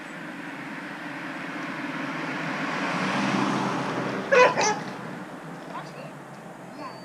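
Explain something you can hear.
A car drives past on a street, growing louder and then fading.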